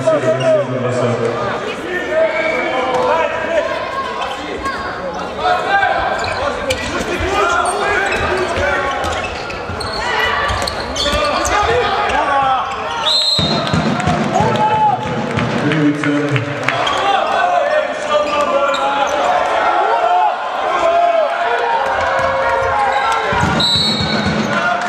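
A ball bounces on the floor.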